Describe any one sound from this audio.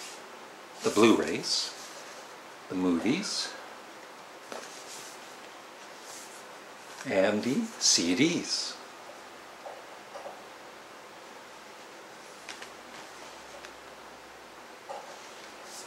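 Stiff card rustles and flaps as it is handled.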